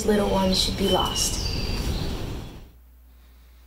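Children speak together close by.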